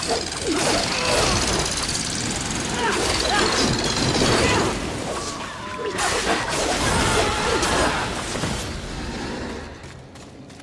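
Blades clash and slash in a fierce fight.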